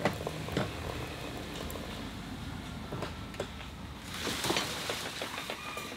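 A wooden gate scrapes and knocks as it swings.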